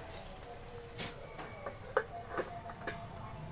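A metal lid clanks onto a wok.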